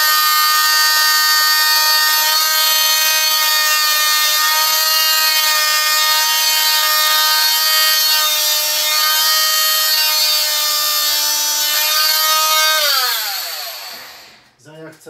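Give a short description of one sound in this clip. A handheld electric tool whines loudly and steadily, then winds down.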